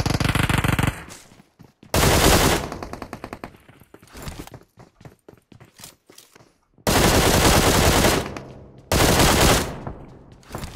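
Rapid gunfire bursts loudly from a video game.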